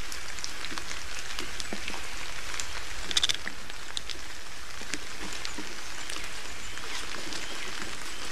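Twigs crackle and rustle softly as a large bird settles onto its nest.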